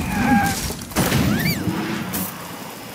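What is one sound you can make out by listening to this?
Wooden planks crash and splinter as a structure collapses.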